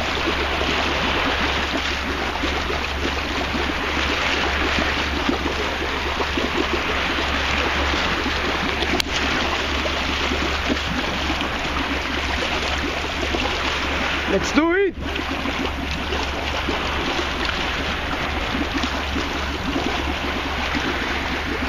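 Wind blusters loudly over the water outdoors.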